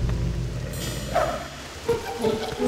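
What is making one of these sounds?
A wolf snarls loudly.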